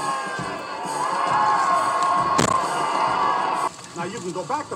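A crowd cheers loudly outdoors.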